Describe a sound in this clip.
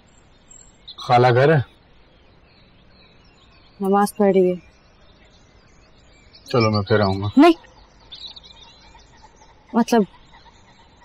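A young man speaks calmly in short phrases.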